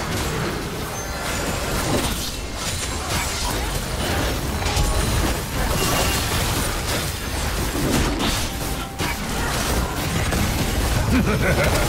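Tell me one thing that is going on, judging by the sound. Magic spells and weapon blows crash and whoosh in a busy fight.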